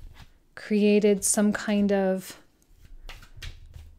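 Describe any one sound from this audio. A card slides and taps onto a wooden table.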